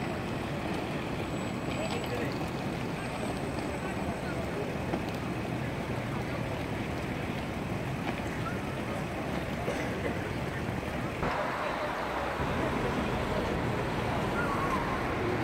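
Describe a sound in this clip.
A busy crowd murmurs outdoors.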